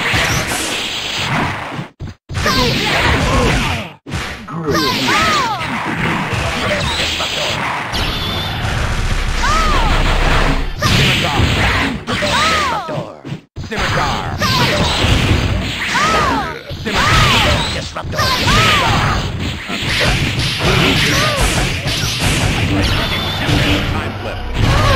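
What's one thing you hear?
Loud blasts, zaps and impacts from a fighting game ring out rapidly.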